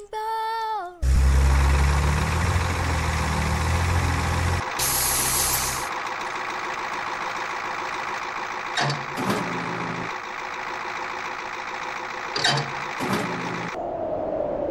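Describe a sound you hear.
A crane engine rumbles and chugs steadily.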